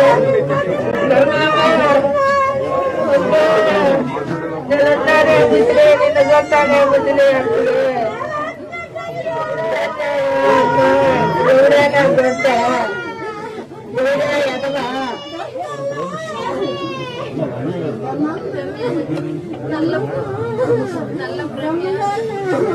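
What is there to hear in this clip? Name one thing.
A woman wails and sobs loudly nearby.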